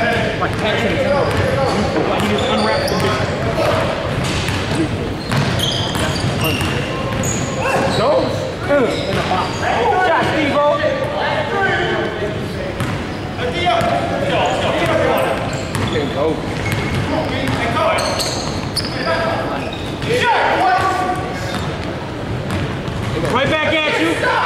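A basketball bounces on a hard court in a large echoing gym.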